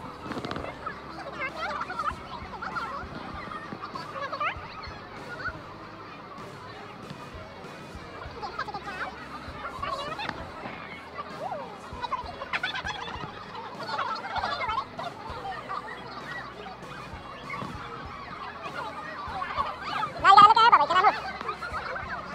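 A young child babbles and chatters close by.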